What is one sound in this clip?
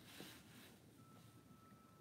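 A marker squeaks and scratches across cardboard.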